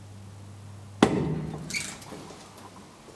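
A heavy elevator door unlatches and swings open with a loud clunk.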